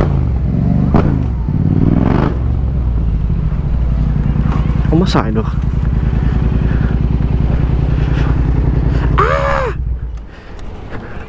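A motorcycle engine rumbles close by, then cuts out.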